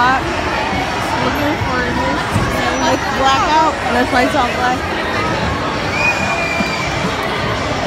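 A brass band plays from the stands.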